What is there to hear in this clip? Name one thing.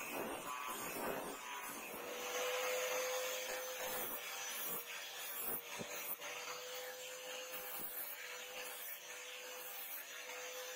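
An angle grinder whines as it grinds metal with a harsh, steady rasp.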